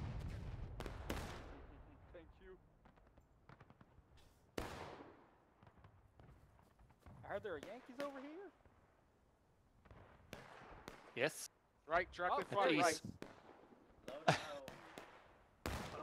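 Musket shots crack sharply, some near and some farther off.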